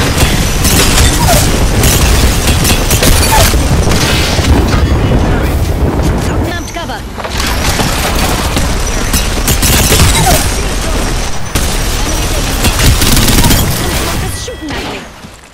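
Rapid automatic gunfire rattles loudly.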